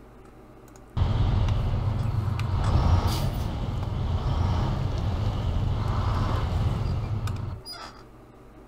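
A heavy diesel truck engine revs.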